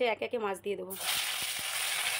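Hot oil sizzles in a pan.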